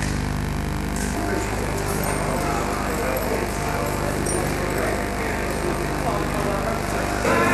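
A rock band plays loudly with drums and electric guitars.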